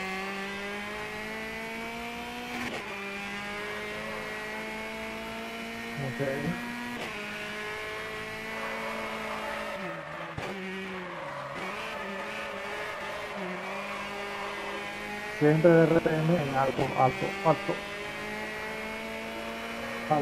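A car engine roars at high revs, rising in pitch and dropping with each gear change.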